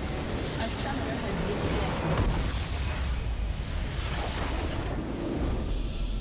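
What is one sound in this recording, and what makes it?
A structure explodes and crumbles with a deep boom.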